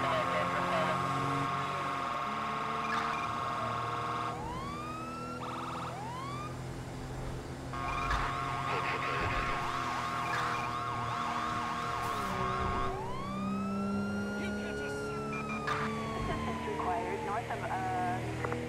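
A police siren wails and whoops.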